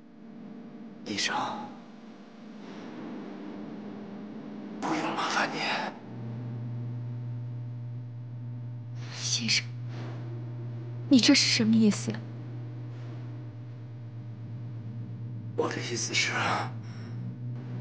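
A man speaks weakly and breathlessly, close by.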